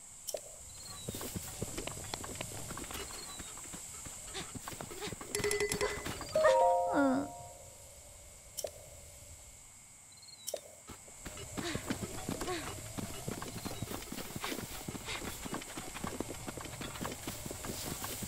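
Footsteps rustle quickly through grass and leafy plants.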